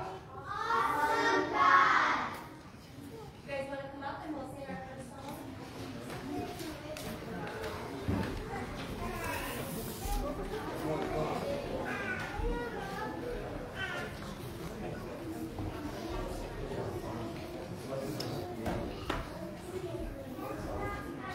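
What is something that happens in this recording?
A crowd of adults and children murmurs and chatters in a large echoing hall.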